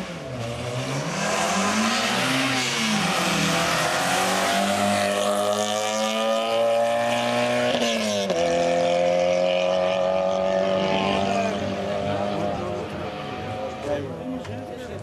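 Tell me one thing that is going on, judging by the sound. A rally car engine roars and revs hard as the car speeds past and drives away.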